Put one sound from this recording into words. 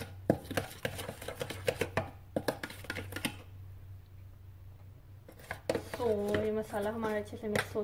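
A spoon scrapes and clatters against a metal bowl while mixing a thick batter.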